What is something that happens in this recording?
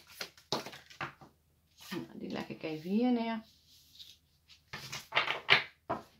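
A card is laid down softly on a table.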